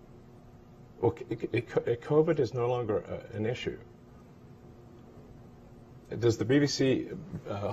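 A man speaks calmly and close by, heard through a microphone.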